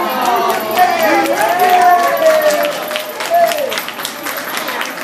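Women cheer and whoop loudly close by.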